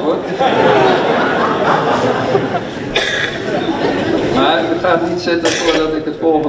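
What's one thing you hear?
An elderly man answers cheerfully from a little way off.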